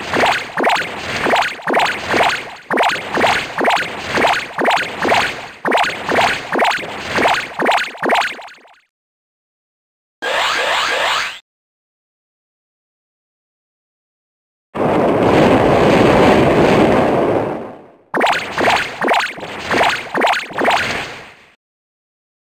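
Quick video game hit sounds repeat in a fast, even rhythm.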